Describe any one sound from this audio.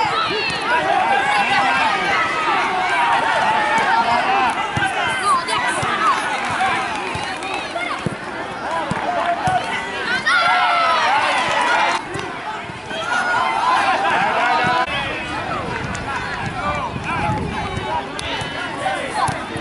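A crowd cheers from the stands.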